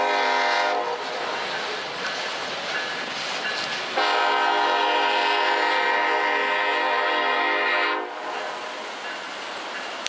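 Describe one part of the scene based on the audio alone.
Freight hopper cars roll and clatter along the rails.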